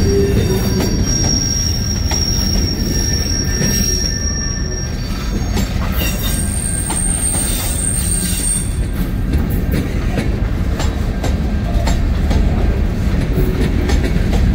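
Freight cars rumble past on the rails close by.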